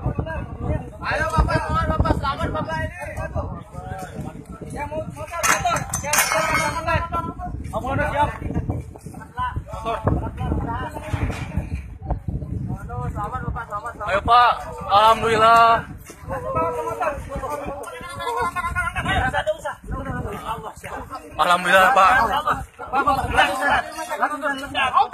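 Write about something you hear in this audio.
Several men talk and shout over each other close by, outdoors.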